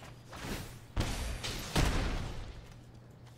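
A fiery blast whooshes and roars.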